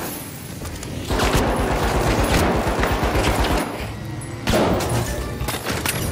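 A gun fires rapid shots.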